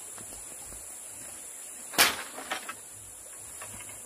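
Bamboo poles clatter onto the ground.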